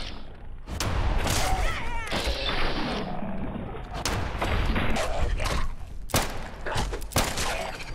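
A creature snarls and growls.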